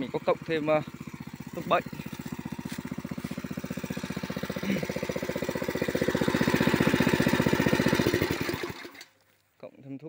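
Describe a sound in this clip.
A motorbike engine hums and slowly rises in pitch.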